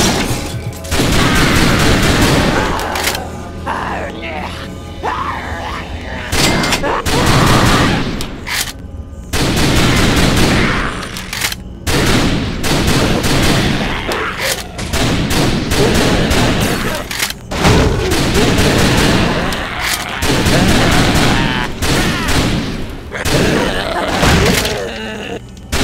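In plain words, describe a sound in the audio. Pistol shots ring out again and again.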